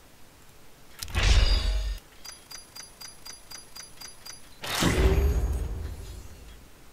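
A deep whooshing boom sounds twice.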